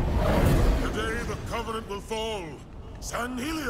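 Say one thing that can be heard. A deep-voiced man shouts forcefully.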